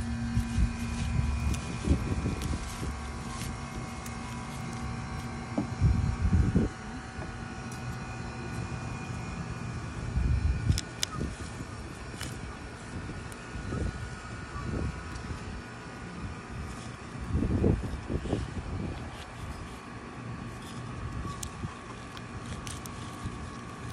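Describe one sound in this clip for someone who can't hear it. A small trowel scrapes and digs into soil.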